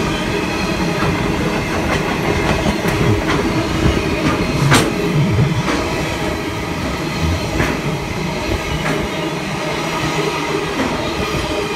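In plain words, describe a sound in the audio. Train wheels clack and knock over rail joints.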